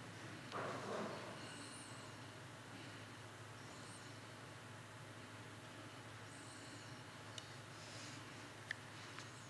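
An older man reads aloud calmly into a microphone in an echoing hall.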